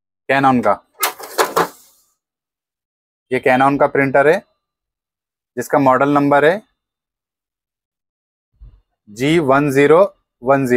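A man speaks calmly and close by, explaining in short phrases.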